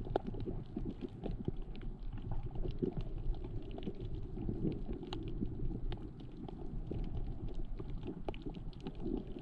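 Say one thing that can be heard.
Water murmurs and rumbles, heard muffled from underwater.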